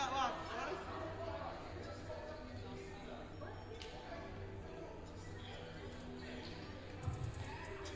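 Footsteps fall on a wooden floor in a large echoing hall.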